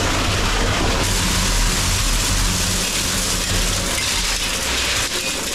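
Wet concrete pours and splatters loudly into a metal bin.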